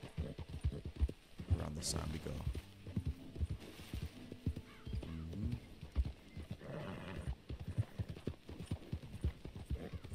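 Horse hooves thud steadily on soft ground at a trot.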